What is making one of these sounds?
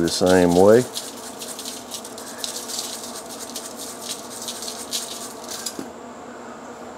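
Seasoning grains patter lightly onto crinkly foil.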